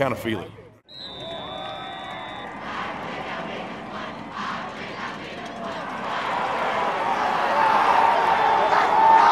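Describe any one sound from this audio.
A crowd cheers and murmurs outdoors, growing louder.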